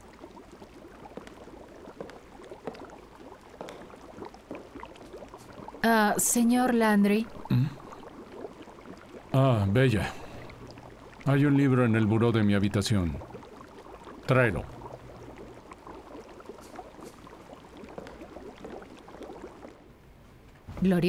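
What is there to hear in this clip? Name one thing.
Water bubbles and churns steadily in a hot tub.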